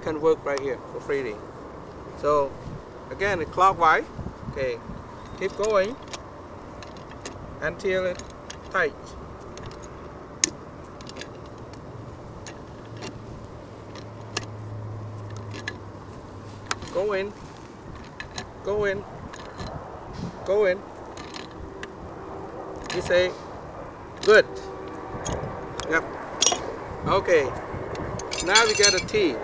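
A man talks calmly close by, explaining.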